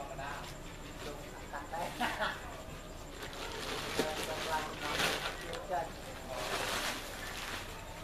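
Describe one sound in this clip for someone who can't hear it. A heavy sack rustles and scrapes as it is dragged across the ground.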